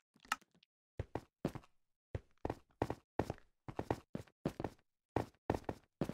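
A pickaxe chips at stone in quick, repeated blows.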